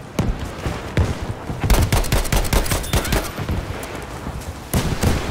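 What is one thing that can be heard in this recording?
Rifle shots crack repeatedly in quick bursts.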